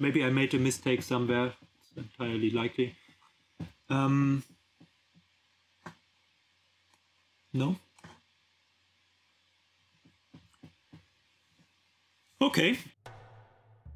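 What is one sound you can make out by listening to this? A man speaks calmly into a headset microphone, in short bursts with pauses.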